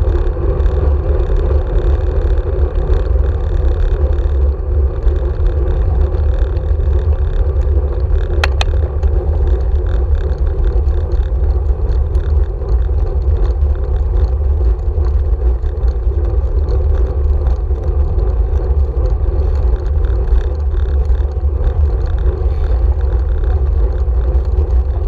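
Bicycle tyres rumble and crunch over a rough gravel path.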